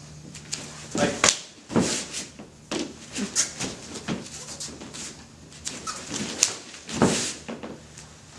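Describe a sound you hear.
Feet thump and slide on a padded mat.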